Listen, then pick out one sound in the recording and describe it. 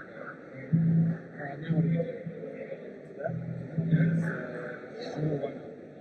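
A bass guitar plays short, deep notes.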